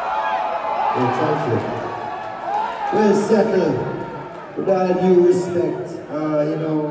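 A man sings into a microphone through loudspeakers in a large echoing hall.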